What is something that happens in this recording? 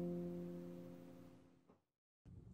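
A sustained keyboard chord fades away.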